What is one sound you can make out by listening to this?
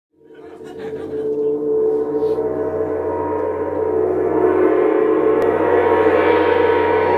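A violin plays long, sustained notes that swell louder.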